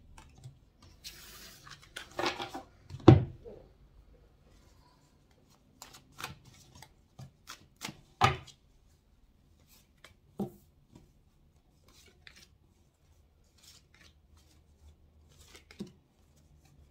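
Cards slide and tap against a table.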